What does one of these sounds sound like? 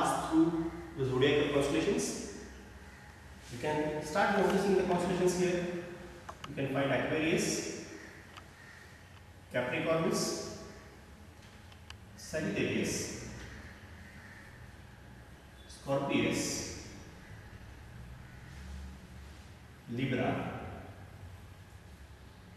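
A man speaks calmly and explains, close by.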